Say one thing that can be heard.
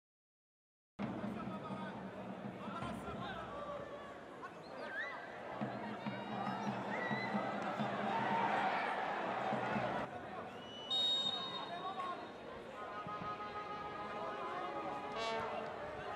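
A small crowd cheers and calls out in a large open stadium.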